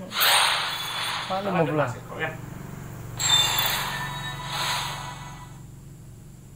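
Video game sound effects whoosh in short bursts.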